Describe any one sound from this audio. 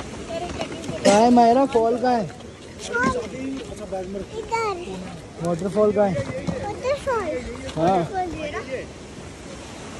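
A young girl talks excitedly up close.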